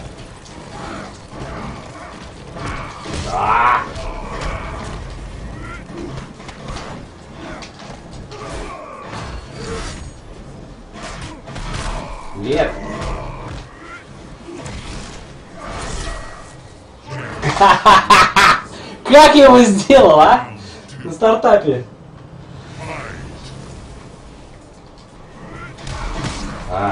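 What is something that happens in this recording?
Punches and kicks land with heavy thuds in a fight.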